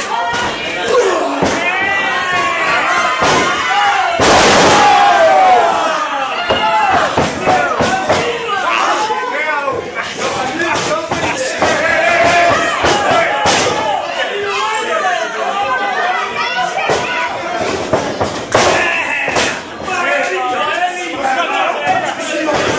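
A crowd of people shouts and cheers loudly.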